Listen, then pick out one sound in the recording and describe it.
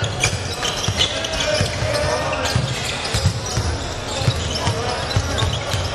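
Basketballs bounce on a hard court in a large echoing hall.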